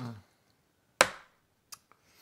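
A paper cup is set down on a table with a short knock.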